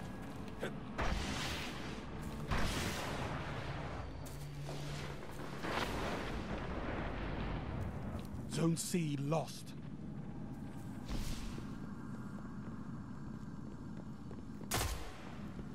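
Heavy gunshots boom with a long rumbling echo.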